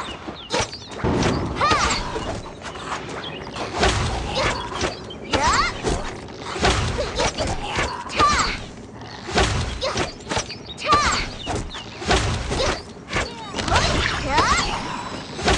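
Game creatures screech and hiss in a fight.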